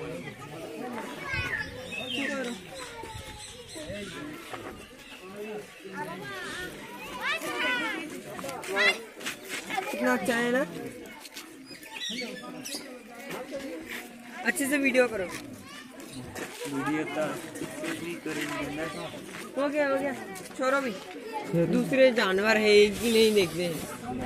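Children chatter and call out nearby, outdoors.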